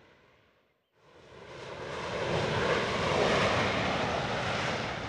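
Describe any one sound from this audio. A jet plane's engines roar louder as the plane approaches.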